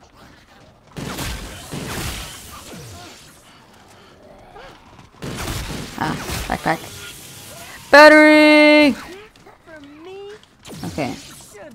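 Electric weapon fire crackles and zaps in bursts.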